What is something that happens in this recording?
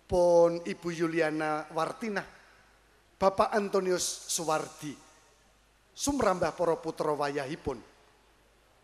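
A middle-aged man speaks in bursts through a microphone, slow and solemn.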